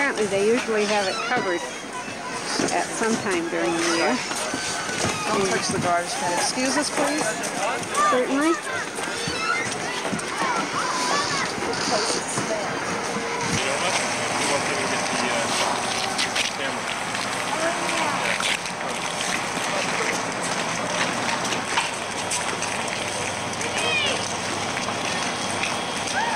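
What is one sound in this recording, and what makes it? A crowd of men and women chatters outdoors, with many voices close and far.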